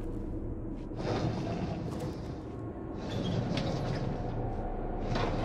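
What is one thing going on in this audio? A heavy metal drawer slides open with a scrape.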